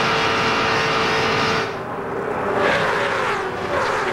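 A pack of race cars roars past.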